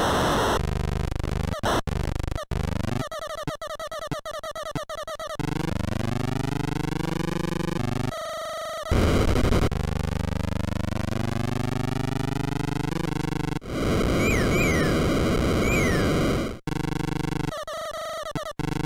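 A chiptune race car engine buzzes and rises in pitch as it speeds up.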